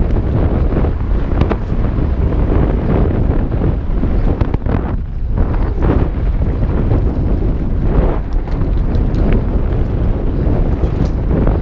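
A bicycle chain and frame rattle over bumps.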